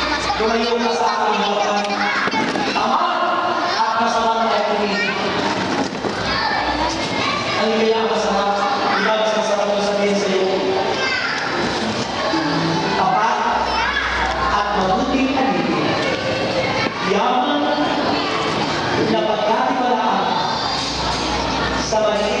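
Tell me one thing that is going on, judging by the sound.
A crowd of men and women chatters loudly all around in a large echoing hall.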